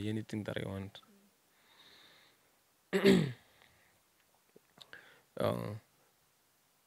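A young man speaks into a microphone in short bursts.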